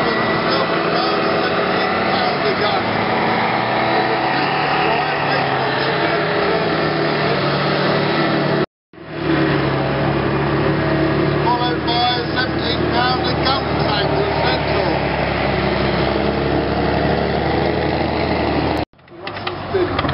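A heavy tank engine roars and rumbles close by.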